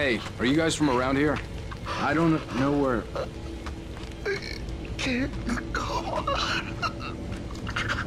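An elderly man speaks weakly and hoarsely.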